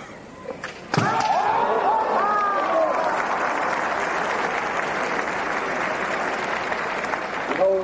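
A large crowd applauds in a hall.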